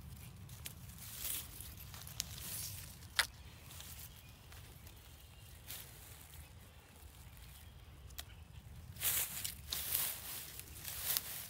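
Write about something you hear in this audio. Dry grass rustles and crackles as a hand pulls litter out of it.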